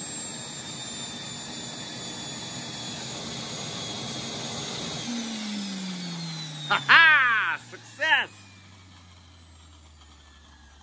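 A small jet turbine engine whines with a high hiss, then spools down.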